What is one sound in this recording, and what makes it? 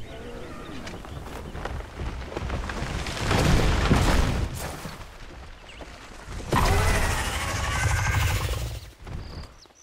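A large beast roars and thrashes loudly.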